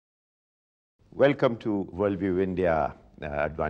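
An elderly man speaks calmly in an interview.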